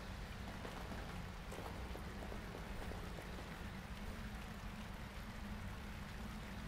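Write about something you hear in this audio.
Footsteps crunch slowly over rubble.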